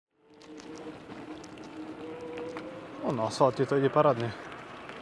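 Scooter tyres roll over rough asphalt.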